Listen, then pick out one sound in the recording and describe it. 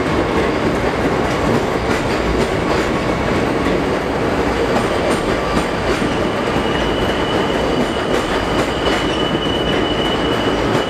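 A subway train rumbles and clatters loudly along elevated tracks.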